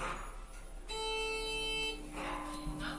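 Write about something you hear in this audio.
An elevator chime rings.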